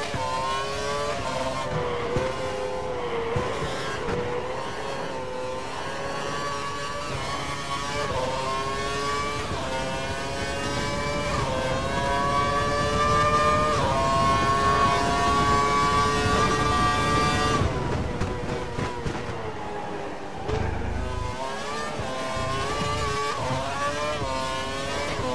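A racing car engine whines steadily, rising in pitch as it speeds up and dropping as it slows for corners.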